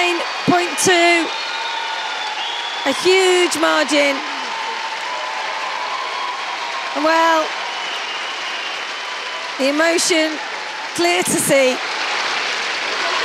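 A large crowd cheers and applauds in a big echoing hall.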